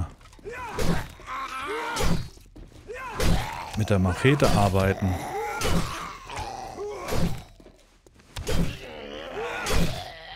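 A zombie growls and snarls close by.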